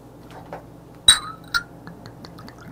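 A glass bottle clinks against a small glass.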